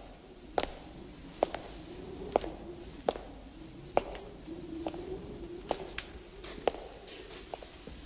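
Footsteps echo slowly on a stone floor.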